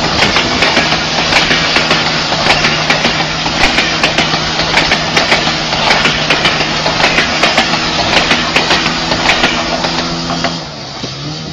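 A train rumbles and clatters overhead.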